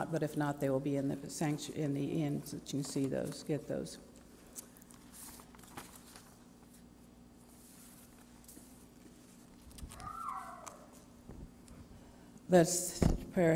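An elderly woman reads aloud calmly through a microphone in a reverberant hall.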